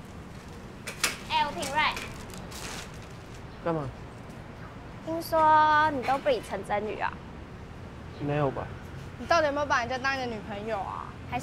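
A teenage boy speaks up close.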